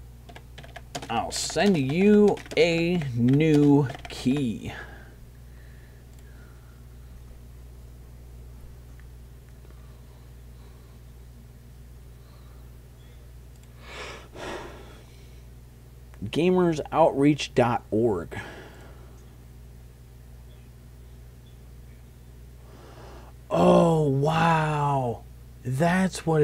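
A man talks with animation, close to a microphone, in short bursts with pauses.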